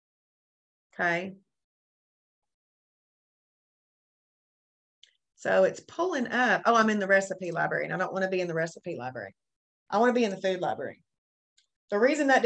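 A woman speaks calmly into a microphone, in short bursts with pauses.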